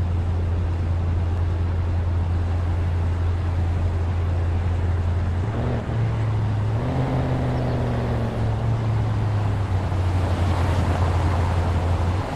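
A car engine hums steadily, its pitch shifting as the car speeds up and slows down.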